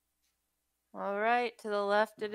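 A young woman talks over an online call.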